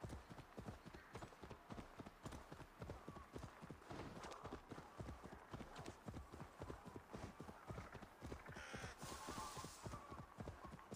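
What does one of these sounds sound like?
A horse's hooves thud steadily on soft ground at a gallop.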